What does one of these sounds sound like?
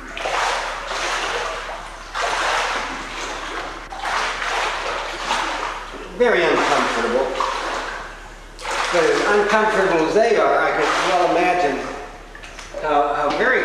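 Water splashes and sloshes around a man swimming.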